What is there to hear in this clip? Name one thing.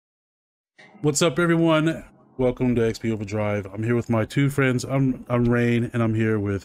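A man talks through a microphone.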